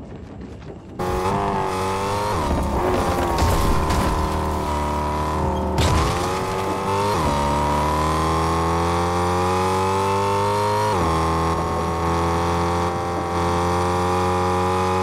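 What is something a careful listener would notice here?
A car engine roars steadily and shifts gears as the car speeds along.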